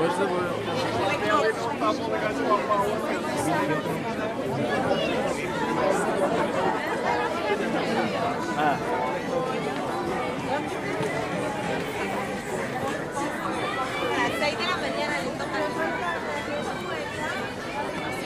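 A large crowd of men and women chatter all around, close by, outdoors.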